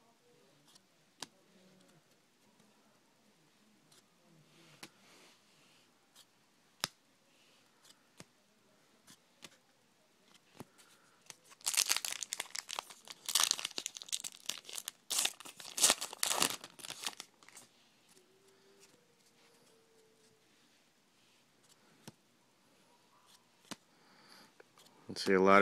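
Cards click and tap softly as they are handled.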